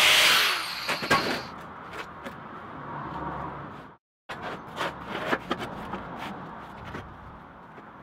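A steel tube clanks and knocks on a metal bench.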